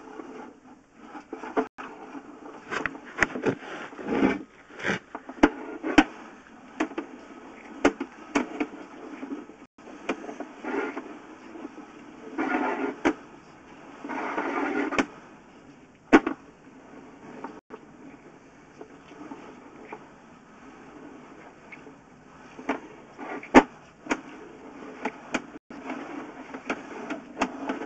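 A probe scrapes and knocks along the inside of a pipe, with hollow, echoing bumps.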